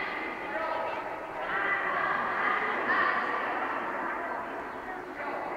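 Children chatter and call out in a large echoing hall.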